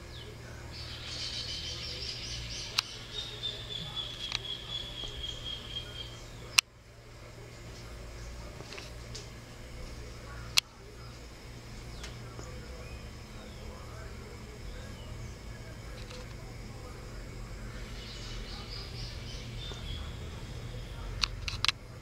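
A small bird chirps and trills in quick bursts close by.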